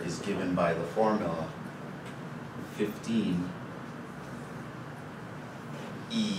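A man speaks calmly in an echoing room.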